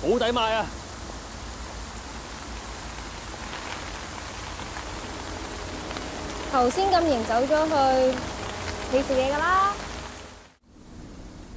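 Light rain patters steadily on an umbrella.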